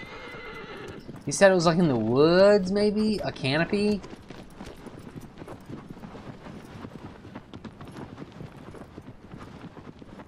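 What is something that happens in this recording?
Horse hooves gallop steadily over sand.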